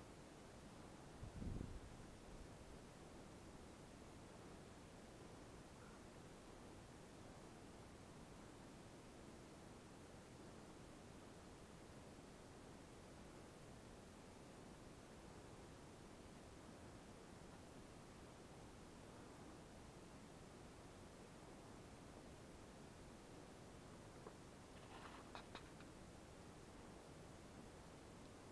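Wind blows softly outdoors through trees.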